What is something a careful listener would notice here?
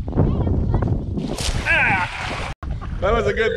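A cast net splashes down onto shallow water.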